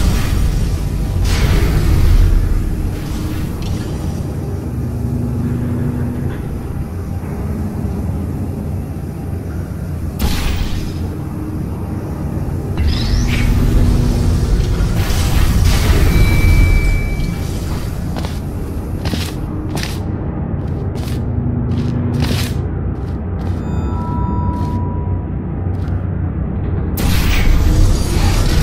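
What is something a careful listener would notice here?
A laser beam hums with a low electric buzz.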